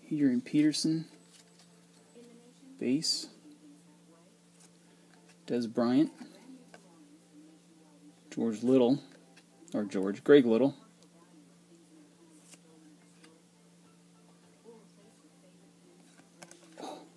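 Trading cards rustle and slide against each other in close hands.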